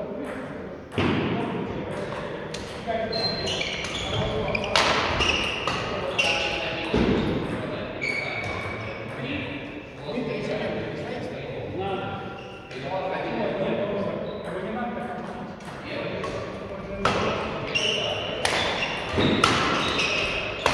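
Badminton rackets sharply strike a shuttlecock back and forth.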